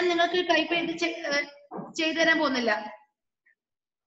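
A woman speaks clearly through an online call.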